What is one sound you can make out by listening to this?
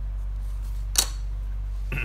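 A wooden ruler knocks against a table.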